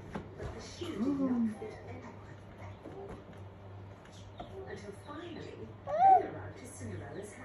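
A toddler babbles and squeals nearby.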